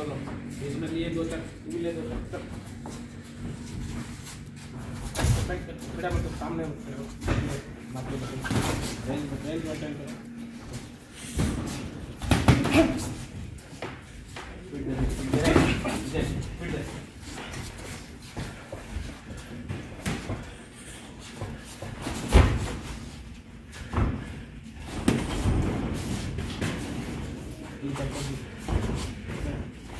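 Footsteps shuffle and scuff on a padded ring floor.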